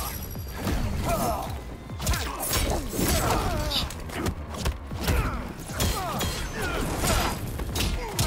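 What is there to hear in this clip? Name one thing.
Flames burst with a roaring whoosh.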